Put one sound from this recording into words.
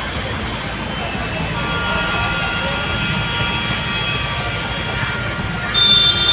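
Motorbike engines hum past through shallow water.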